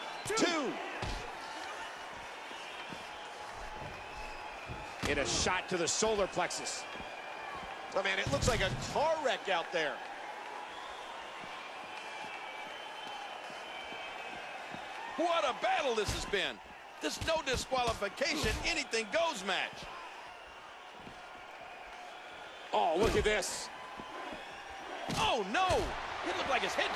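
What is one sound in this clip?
Heavy blows and bodies slamming down thud sharply.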